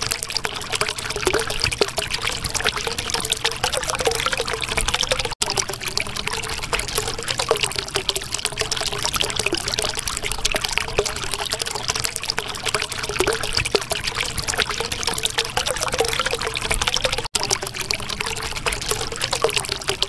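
Air bubbles gurgle and pop steadily underwater.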